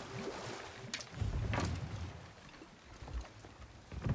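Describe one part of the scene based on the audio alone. A wooden boat knocks against a wooden dock.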